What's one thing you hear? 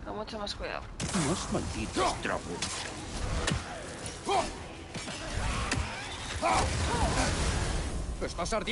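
An axe swings and strikes in a fight.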